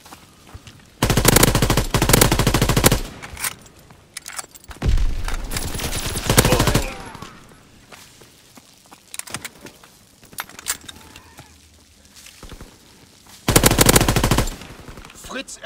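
Automatic gunfire bursts rapidly in loud stretches.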